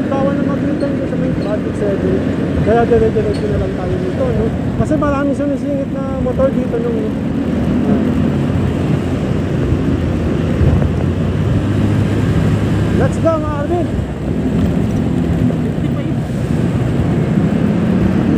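Traffic rumbles along a busy road.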